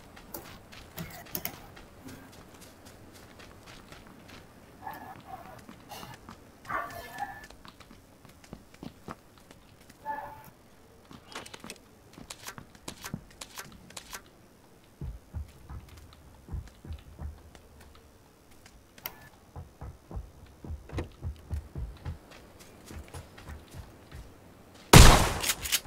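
Footsteps thud quickly on the ground and floors.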